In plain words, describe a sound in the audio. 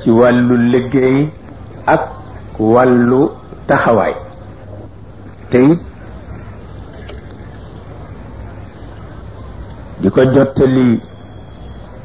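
An elderly man chants slowly into a microphone, in long drawn-out phrases with pauses between them.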